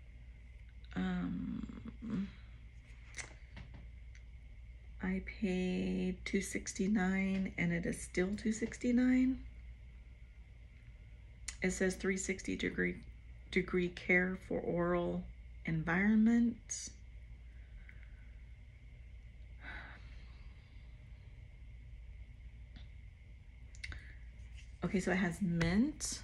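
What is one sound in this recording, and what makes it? A middle-aged woman talks calmly and casually, close by.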